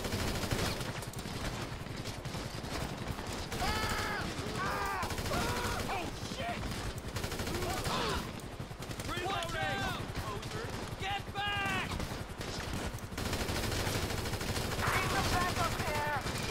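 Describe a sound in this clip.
A helicopter's rotor thrums overhead.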